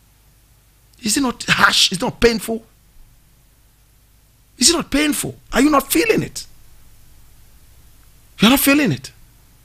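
A man speaks with animation into a close microphone, in short bursts.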